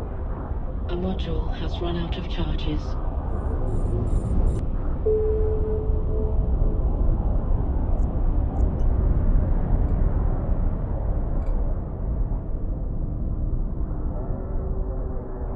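A spaceship engine rumbles low and steadily.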